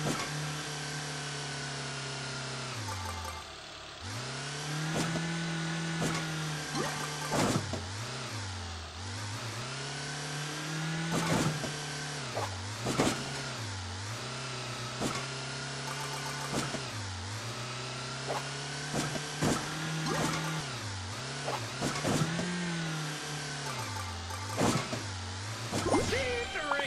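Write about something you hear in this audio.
A small engine hums and revs up and down.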